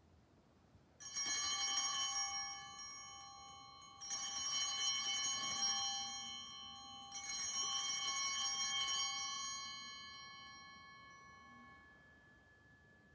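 Altar bells ring out brightly in three bursts, each slowly fading in a quiet echoing hall.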